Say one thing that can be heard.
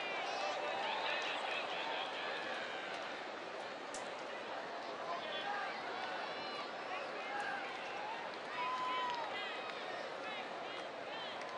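A large crowd murmurs and cheers in an open stadium.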